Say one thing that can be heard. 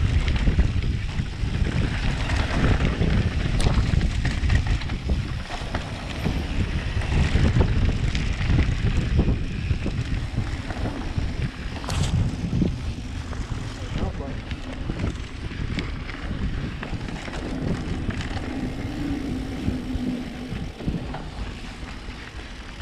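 A bicycle frame clatters and knocks over bumps.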